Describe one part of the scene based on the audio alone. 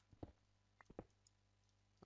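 A stone block cracks and breaks apart.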